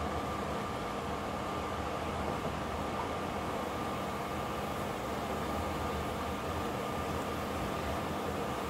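A pot of sauce simmers and bubbles.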